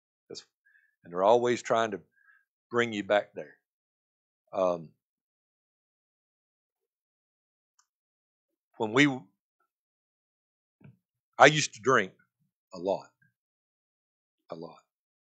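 An elderly man speaks with emphasis through a microphone, pausing between phrases.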